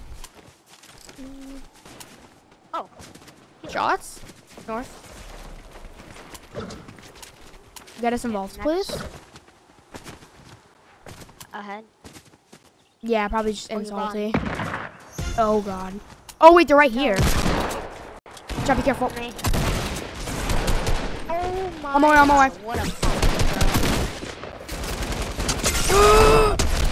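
A boy talks with animation into a close microphone.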